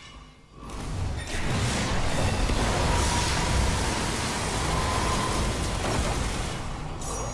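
Fiery explosions roar loudly.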